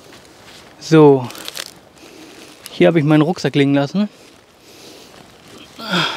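Footsteps crunch through dry leaves nearby.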